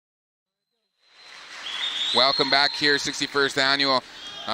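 Spectators murmur in a large echoing gym.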